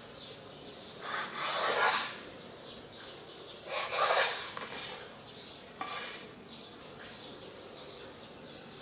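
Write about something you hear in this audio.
A knife cuts through soft egg onto a wooden board.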